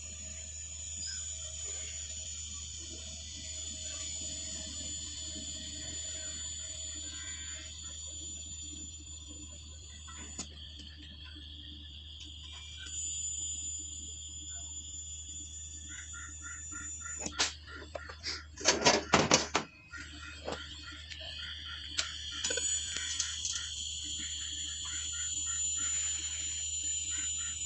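A welding torch hisses steadily.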